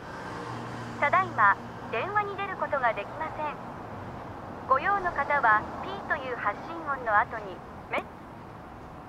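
A young man speaks quietly on a phone.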